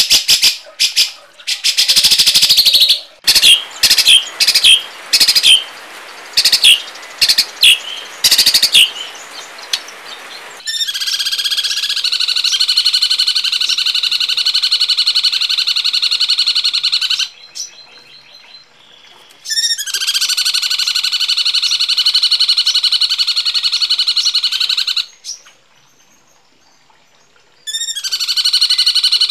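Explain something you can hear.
Small birds chirp in harsh, rapid bursts, then trill loudly and steadily.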